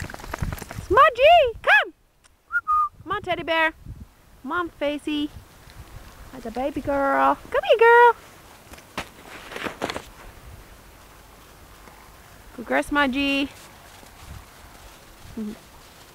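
Dogs bark and yelp outdoors.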